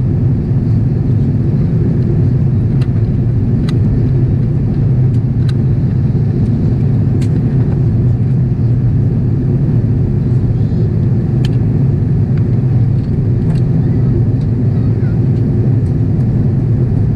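A jet engine roars in a low, steady drone inside an airliner cabin.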